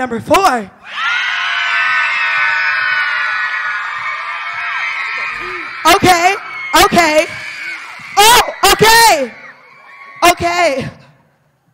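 A large crowd of young people cheers and screams.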